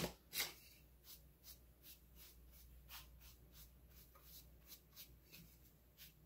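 A dry brush scrapes and taps softly against a hard surface.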